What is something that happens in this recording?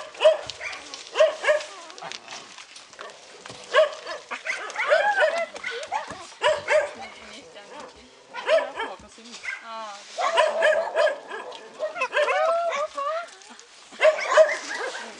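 A puppy yelps and whimpers in high, short cries close by.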